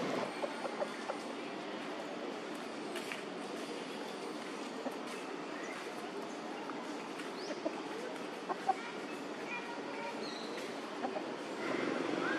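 A rooster walks over dry leaves.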